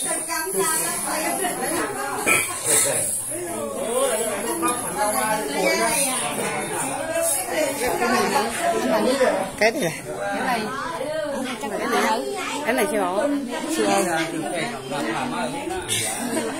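Men and women chatter nearby in a crowd.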